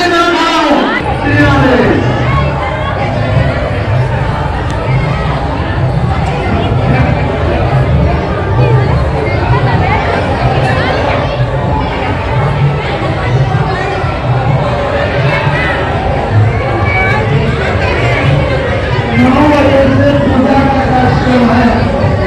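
A crowd of people talks and shouts loudly all around.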